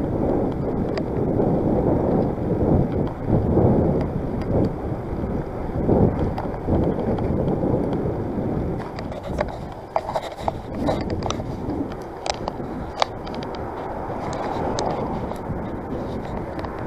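Wind buffets loudly outdoors, easing off later.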